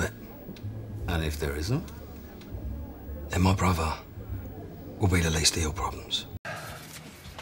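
A man speaks calmly and closely.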